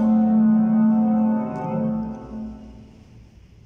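A short, bright victory jingle plays and fades out.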